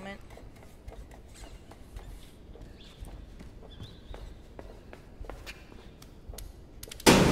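Footsteps tread lightly.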